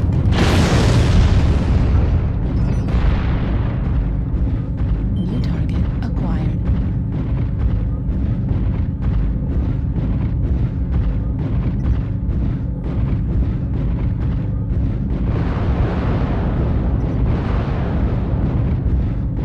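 A heavy machine rumbles low and steady.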